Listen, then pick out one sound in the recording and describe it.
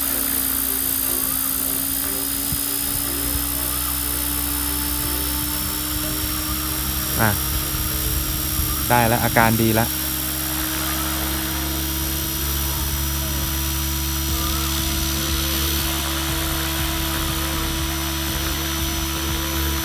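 A small remote-control aircraft buzzes steadily as it hovers close by.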